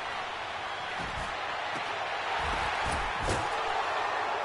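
Players collide with heavy thuds.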